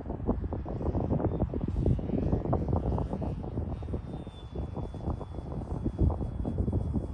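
A small drone's propellers hum faintly overhead.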